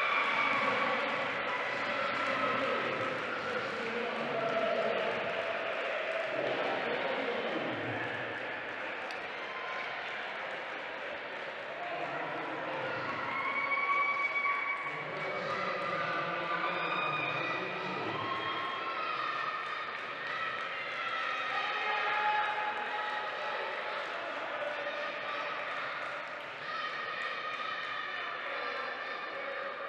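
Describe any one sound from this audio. A crowd chatters in a large echoing hall.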